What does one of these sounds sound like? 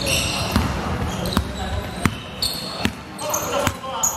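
A basketball bounces on a wooden floor, echoing in a large hall.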